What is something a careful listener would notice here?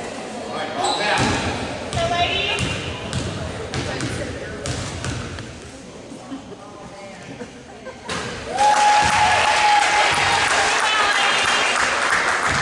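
A basketball bounces on a hard court floor in a large echoing gym.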